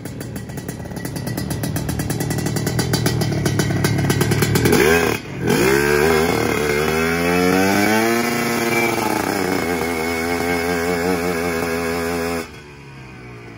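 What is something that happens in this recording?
A motorbike engine revs loudly close by, rising and falling.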